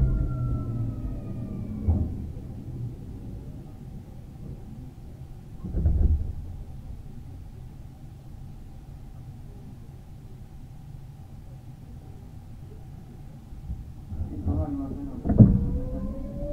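A stopped train hums steadily.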